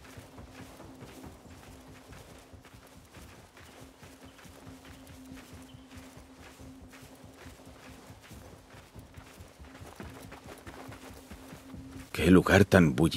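Footsteps crunch on dry grass and sand.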